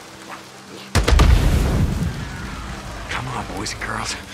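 A fire bursts with a loud whooshing roar.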